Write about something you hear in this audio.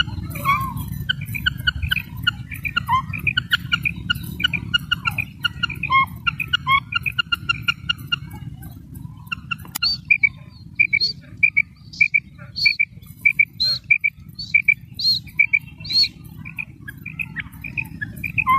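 A quail calls with short, repeated chirping notes.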